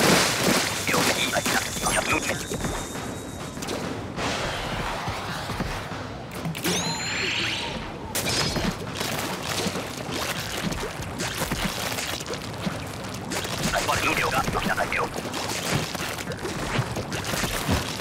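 Wet paint splatters and sprays in quick bursts.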